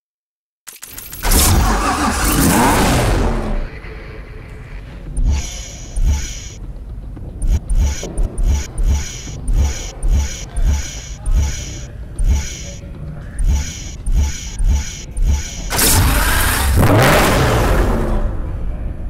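A sports car engine revs loudly and fades.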